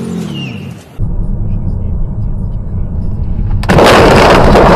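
A car engine hums steadily while driving.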